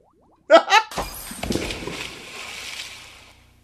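A glass bowl shatters.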